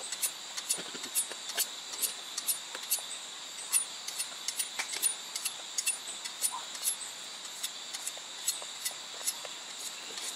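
A blade chops into meat with sharp, repeated knocks.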